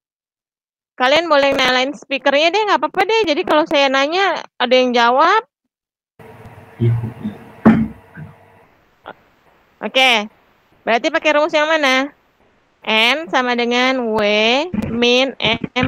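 A woman explains with animation through an online call.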